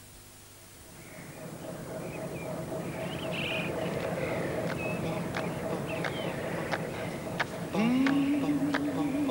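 A ferry's engine rumbles steadily over the water.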